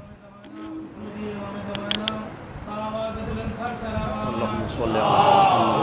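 An elderly man recites in a steady chant through a microphone.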